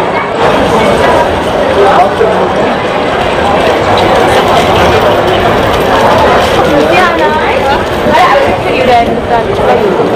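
A crowd of people chatters in a busy street outdoors.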